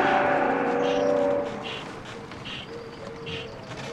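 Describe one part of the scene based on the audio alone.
A gramophone plays music from a record, crackling softly.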